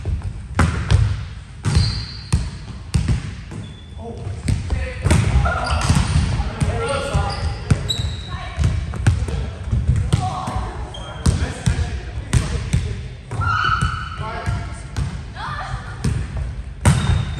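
A volleyball thuds sharply off players' arms and hands.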